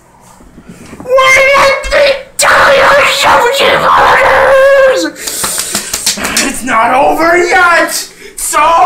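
A young man sings loudly, close by.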